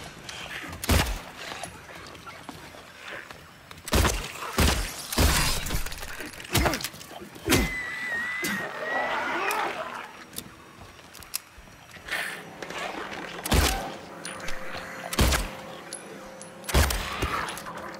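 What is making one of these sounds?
Gunshots ring out in an echoing space.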